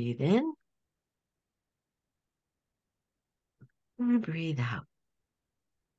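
A middle-aged woman speaks calmly over an online call, in short phrases with pauses.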